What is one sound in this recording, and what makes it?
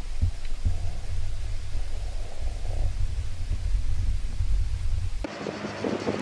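Water rumbles and murmurs underwater.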